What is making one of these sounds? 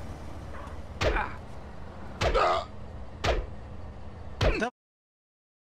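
A shovel strikes a body with dull thuds.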